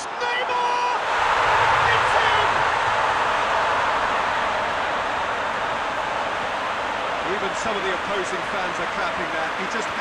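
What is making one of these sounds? A large crowd cheers and roars loudly.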